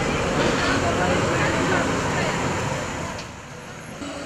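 A bus engine rumbles as it drives past close by.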